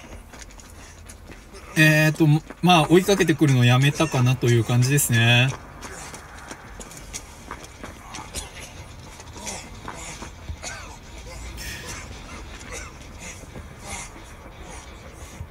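Footsteps run through grass and dirt.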